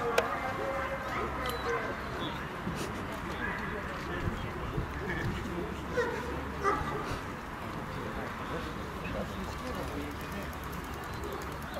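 A young woman calls commands to a dog.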